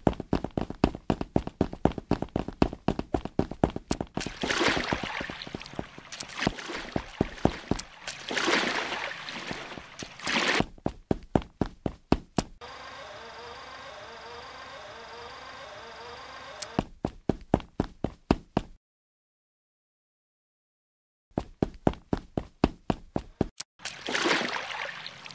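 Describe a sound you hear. Quick light footsteps patter steadily.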